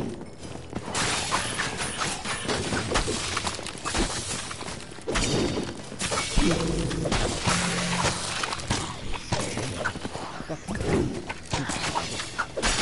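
Weapons clash and strike in quick bursts during a fight.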